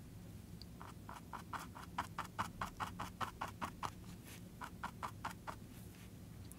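A paintbrush dabs and scrapes softly on a canvas.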